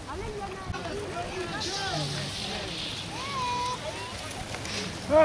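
Bicycle tyres roll over bumpy grass.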